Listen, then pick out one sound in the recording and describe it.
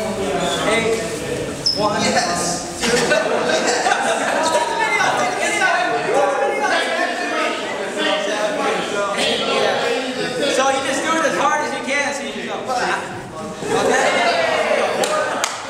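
A young man calls out dance steps with animation.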